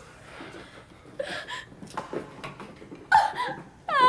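A young woman sobs close by.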